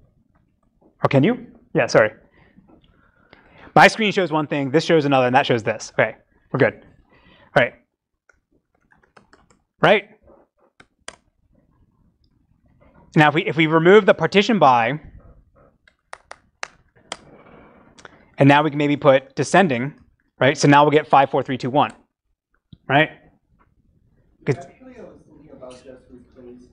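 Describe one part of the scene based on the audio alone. A man lectures calmly through a microphone, pausing between phrases.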